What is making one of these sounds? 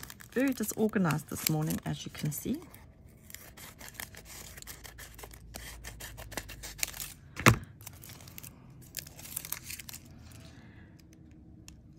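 Aluminium foil crinkles and rustles as hands handle it.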